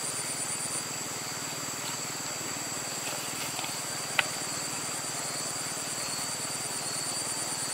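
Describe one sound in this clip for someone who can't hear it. Vegetables rustle and tap softly as they are dropped into a woven basket.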